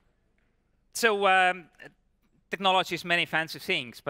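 A man speaks into a microphone over loudspeakers in a large hall, with animation.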